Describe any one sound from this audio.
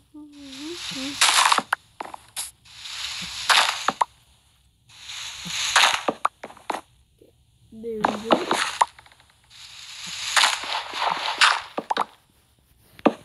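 Dirt and wood blocks crunch in short bursts as they are dug out.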